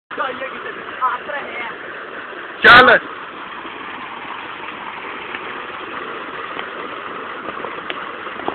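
Water pours and splashes steadily into a pool.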